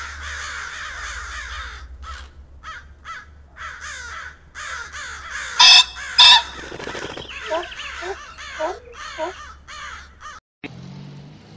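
A bird calls repeatedly with shrill chirps.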